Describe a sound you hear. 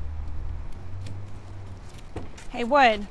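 Metal clicks and scrapes as a tool works at a car door lock.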